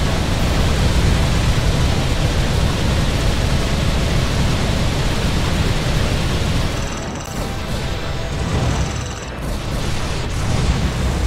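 A loud roaring rush of wind fills the air.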